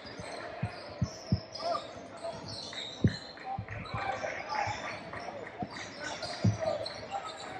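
A basketball bounces on a hard wooden floor in a large echoing gym.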